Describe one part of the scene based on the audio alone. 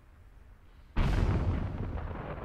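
Wind roars loudly across open sand.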